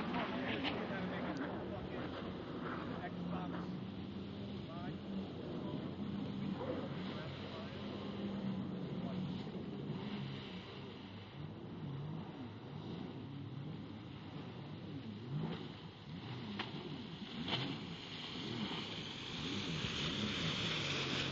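A jet ski engine drones and revs across the water, growing loud as it passes close.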